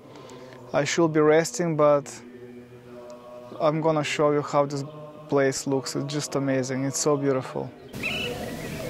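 A man speaks calmly, close to the microphone.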